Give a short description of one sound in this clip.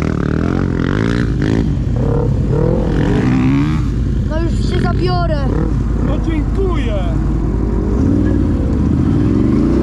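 A quad bike engine revs and roars close by, rising and falling in pitch.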